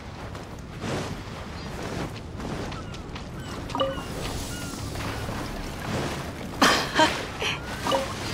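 Footsteps run across soft sand.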